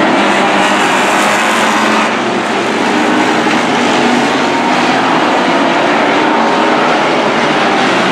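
Race car engines roar loudly as the cars speed around the track.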